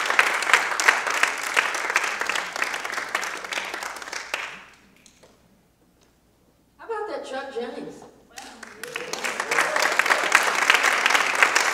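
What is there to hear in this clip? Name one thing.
An audience claps and cheers in a hall.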